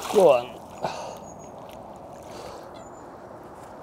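Water laps gently against the bank.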